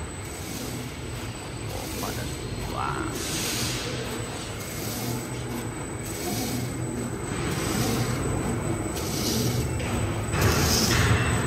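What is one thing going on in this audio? An industrial machine hums and whirs steadily in a large hall.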